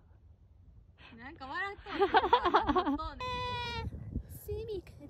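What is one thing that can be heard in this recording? A young woman speaks animatedly and playfully up close.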